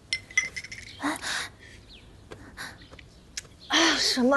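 A young woman gags and retches.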